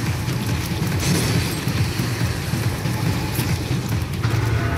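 A blade slashes and strikes with sharp metallic hits.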